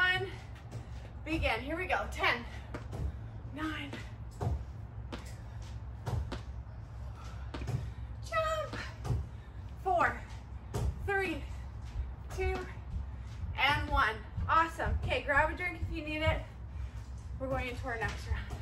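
Feet thud on a mat as a woman jumps.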